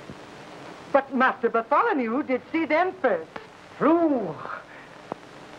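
A middle-aged woman speaks sharply and angrily nearby.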